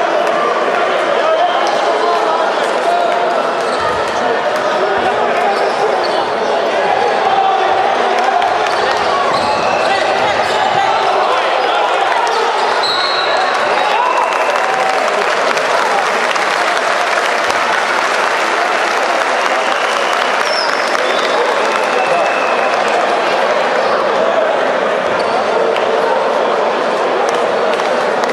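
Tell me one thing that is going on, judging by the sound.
A crowd in a large echoing hall chatters and cheers throughout.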